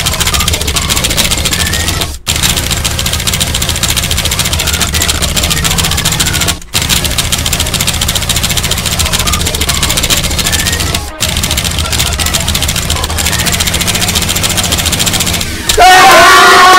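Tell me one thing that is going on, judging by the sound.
Keyboard keys clatter rapidly.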